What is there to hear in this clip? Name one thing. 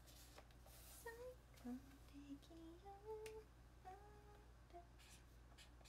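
A young woman speaks softly close by in a high voice.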